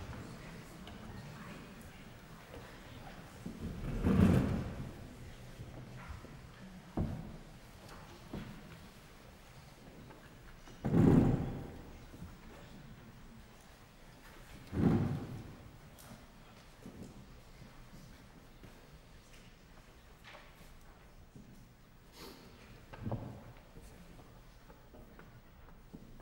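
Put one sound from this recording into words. A string quartet plays softly in a reverberant hall, with sudden loud swells.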